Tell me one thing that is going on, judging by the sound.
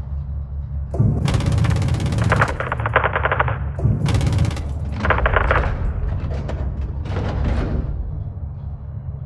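Cannon shells burst with heavy, rumbling explosions.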